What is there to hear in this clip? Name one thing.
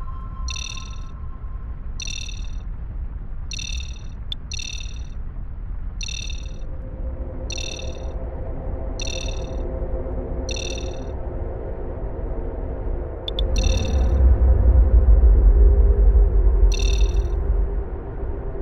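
A spacecraft engine hums low and steady, then swells to a loud roar.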